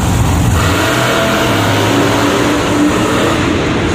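A monster truck crashes down onto crushed cars with a heavy crunch of metal.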